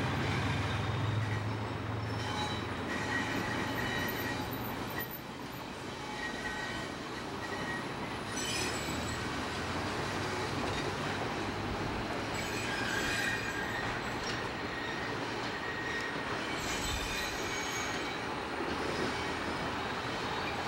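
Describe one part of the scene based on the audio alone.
A diesel train rumbles across a steel truss bridge.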